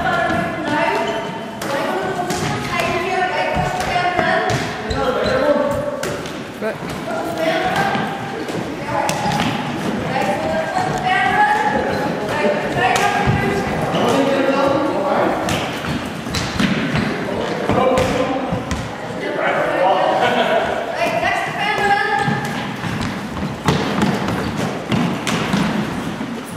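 A ball thuds as it is caught and thrown.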